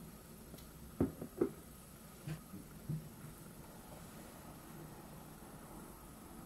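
A brush clinks against a small ceramic bowl.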